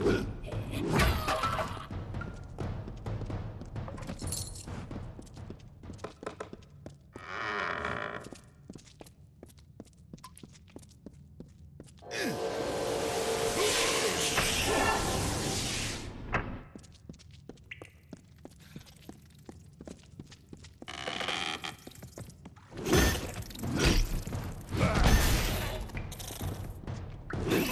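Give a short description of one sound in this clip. Weapons clash and strike in combat.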